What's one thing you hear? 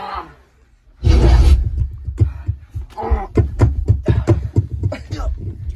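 Hands slap against bodies in quick hits.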